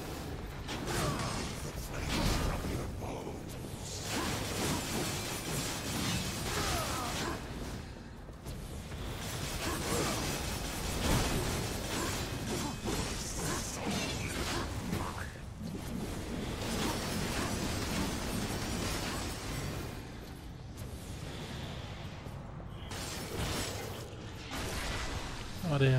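Blasts and impacts boom repeatedly.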